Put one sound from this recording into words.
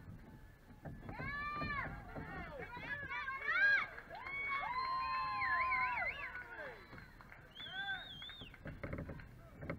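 Young girls shout and cheer from across an open field.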